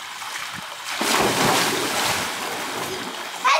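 A man jumps into a pool with a loud splash.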